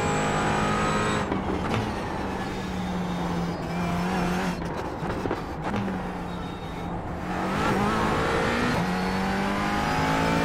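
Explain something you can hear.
A racing car engine roars steadily, dropping in pitch as gears shift down and then rising again.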